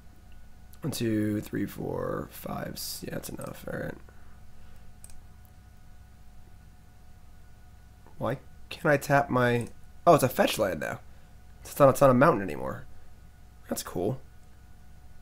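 A young man speaks casually and with animation into a close microphone, in short bursts with pauses.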